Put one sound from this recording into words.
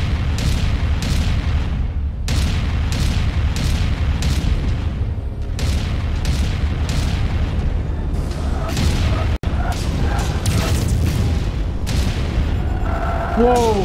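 A deep mechanical rumble drones steadily.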